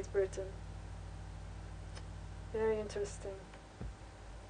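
A woman speaks close to a microphone in short bursts.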